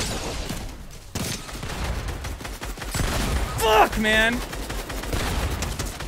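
Gunshots crack in quick bursts.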